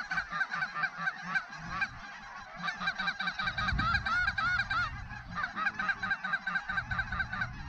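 A large flock of geese honks and calls loudly overhead and across the water.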